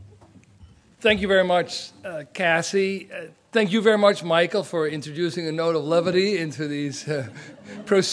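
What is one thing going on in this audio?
A man speaks warmly into a microphone.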